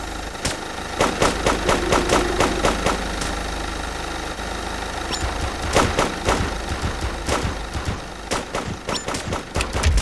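Fiery blasts burst and thump again and again in quick strikes.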